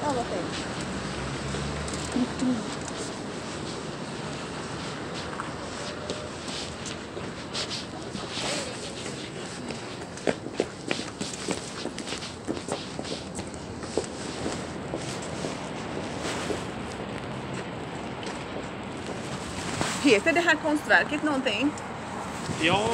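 Traffic hums steadily outdoors along a city street.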